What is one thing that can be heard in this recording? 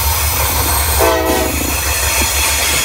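A train horn blasts briefly.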